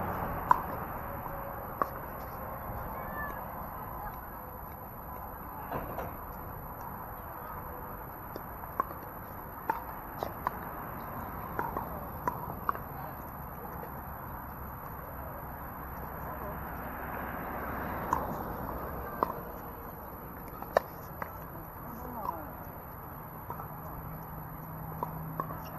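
Paddles pop sharply against plastic balls on nearby courts.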